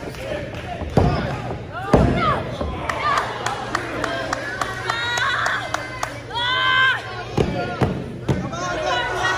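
Bodies thud heavily on a wrestling mat.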